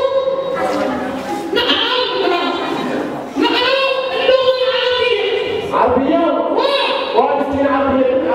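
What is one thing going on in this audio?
A young girl sings into a microphone, heard through loudspeakers in an echoing hall.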